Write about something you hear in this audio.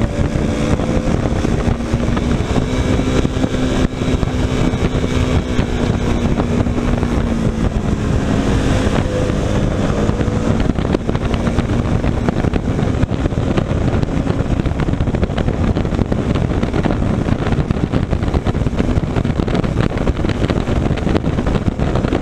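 Wind roars loudly past a moving motorcycle.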